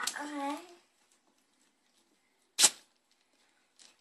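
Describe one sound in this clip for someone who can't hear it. Wrapping paper crinkles as a young girl unwraps a gift.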